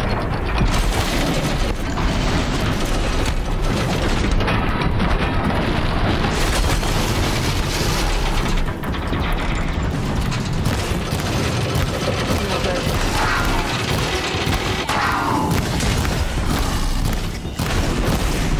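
Metal machine creatures clank and crash in a fight.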